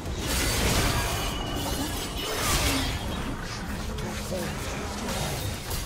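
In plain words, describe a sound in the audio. Game spell effects crackle and burst in a fast fight.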